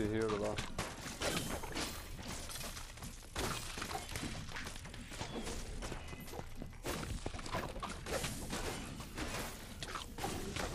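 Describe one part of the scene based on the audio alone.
Game weapons swing and strike enemies with sharp hits.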